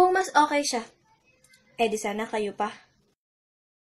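A young woman speaks close up with animation.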